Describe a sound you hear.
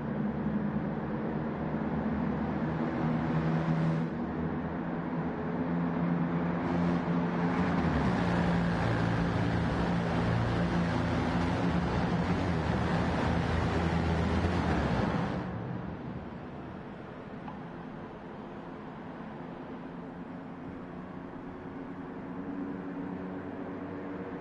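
Small car engines buzz and drone as cars race past.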